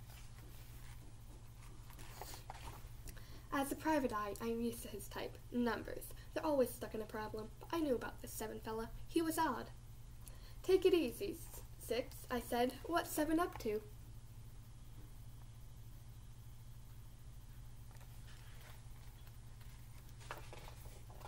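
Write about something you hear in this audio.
Book pages rustle as they are turned.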